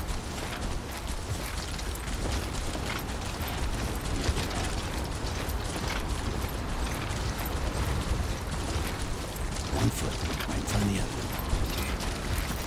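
Footsteps crunch on grass at a steady walking pace.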